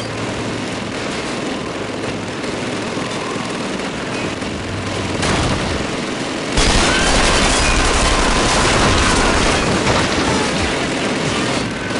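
Gunfire crackles and rattles nearby.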